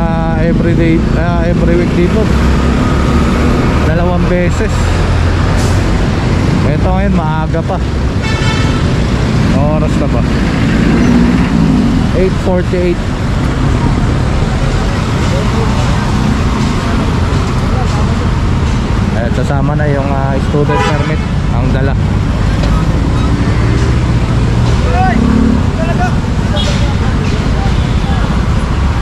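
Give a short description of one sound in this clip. Vehicle engines rumble steadily in busy street traffic.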